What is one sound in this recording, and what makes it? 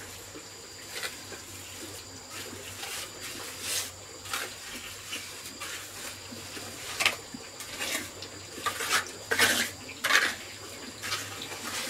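A trowel scrapes and slaps wet cement.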